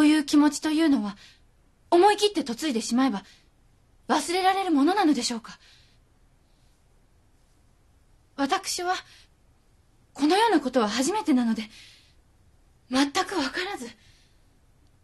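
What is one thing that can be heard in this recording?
A young woman speaks softly and hesitantly.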